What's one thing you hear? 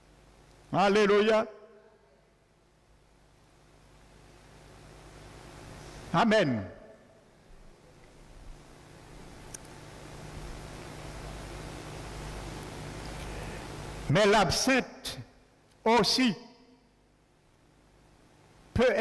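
An elderly man speaks slowly and emphatically through a microphone in an echoing hall, with long pauses.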